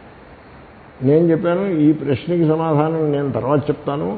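An elderly man speaks calmly into a headset microphone.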